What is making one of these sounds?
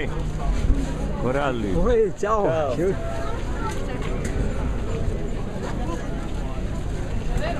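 A crowd murmurs and shuffles all around.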